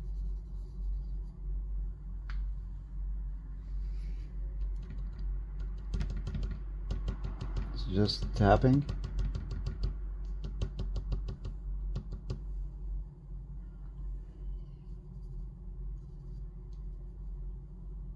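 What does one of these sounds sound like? Charcoal rubs and scratches softly on paper.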